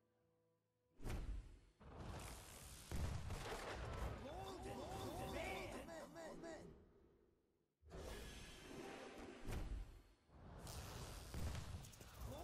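A magical whoosh and boom sound as a card pack bursts open.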